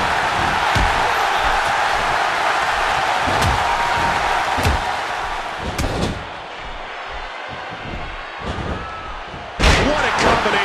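Heavy blows and slams thud.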